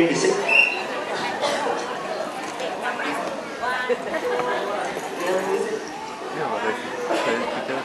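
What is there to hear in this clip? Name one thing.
A young girl speaks softly into a microphone.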